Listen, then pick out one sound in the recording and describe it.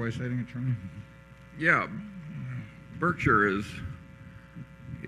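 An elderly man speaks with animation into a microphone.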